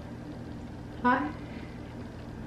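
A young woman makes a short high exclamation close by.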